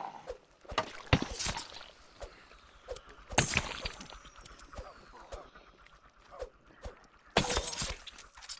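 A blade strikes flesh with sharp, heavy thuds.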